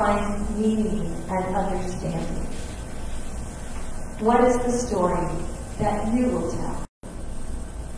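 An elderly man chants slowly in a sung voice over a microphone.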